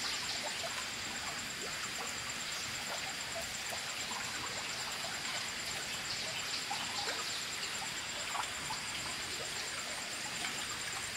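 Water sloshes as a woman wades and scoops in a shallow pond.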